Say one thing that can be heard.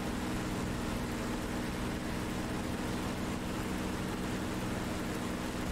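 Wind rushes steadily past an aircraft.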